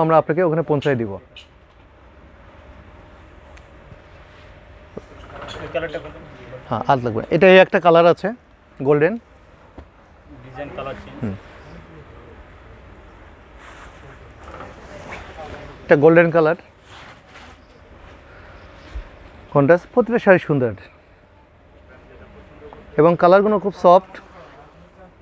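Silk fabric rustles as it is unfolded and spread out.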